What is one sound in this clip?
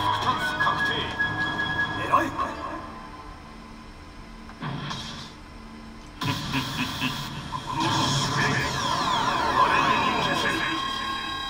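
A slot machine plays loud electronic music and sound effects.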